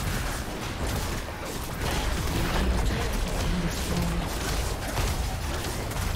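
Fantasy battle sound effects crackle, whoosh and clash in quick succession.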